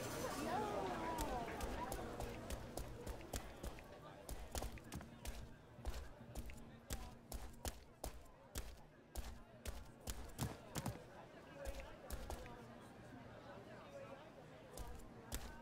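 Footsteps tap quickly and steadily on stone.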